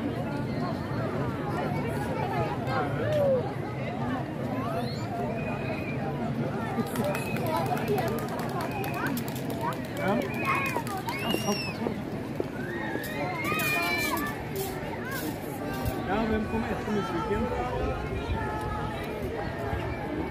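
A large outdoor crowd of men, women and children chatters with many overlapping voices.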